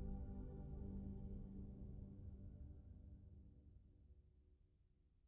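A boat engine rumbles low and fades away.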